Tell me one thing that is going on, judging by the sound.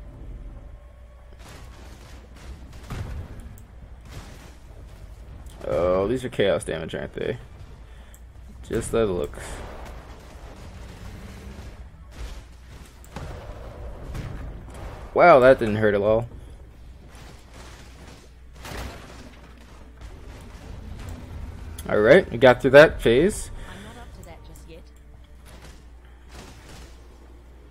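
Magic spells crackle and whoosh in bursts.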